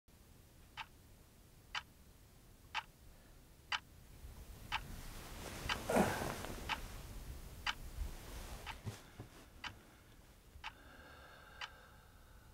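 A clock ticks loudly, once each second.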